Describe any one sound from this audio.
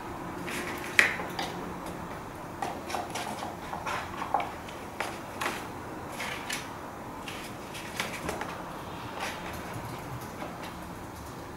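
A brush scrapes and dabs paint onto thick paper.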